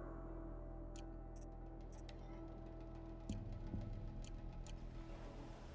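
Short electronic menu clicks tick a few times.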